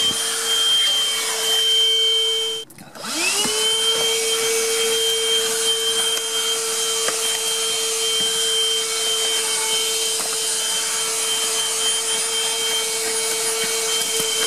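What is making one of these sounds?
A handheld vacuum cleaner whirs with a steady high hum, cuts out briefly, then spins back up.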